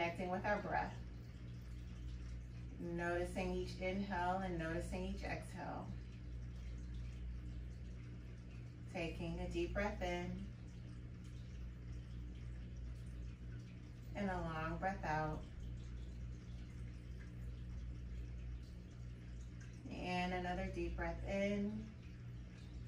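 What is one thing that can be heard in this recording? A young woman speaks calmly and slowly, close by, in short phrases with long pauses.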